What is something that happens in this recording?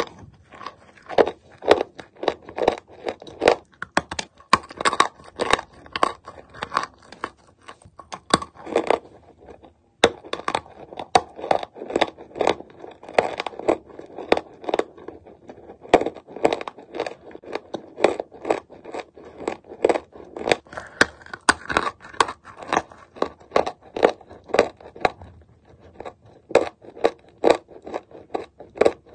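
A person chews dry chalk with crunching close to the microphone.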